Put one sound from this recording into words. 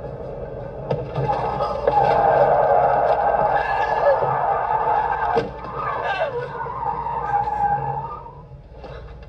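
Car tyres screech on asphalt as the car spins.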